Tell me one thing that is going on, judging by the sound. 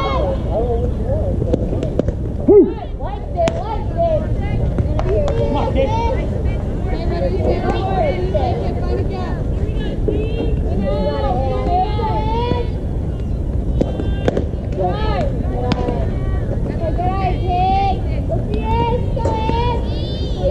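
Young women shout and cheer nearby, outdoors.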